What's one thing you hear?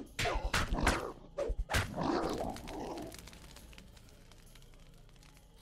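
A flaming torch crackles.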